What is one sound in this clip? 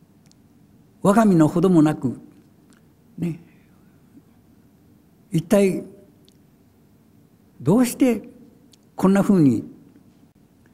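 An elderly man reads aloud slowly into a microphone, with long pauses.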